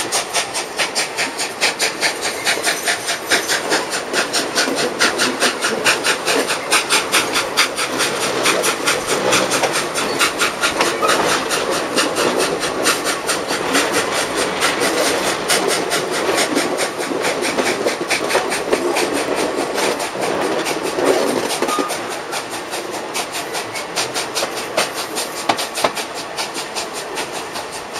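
Train wheels clatter rhythmically over rail joints close by.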